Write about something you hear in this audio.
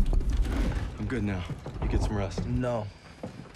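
A young man speaks with determination, close by.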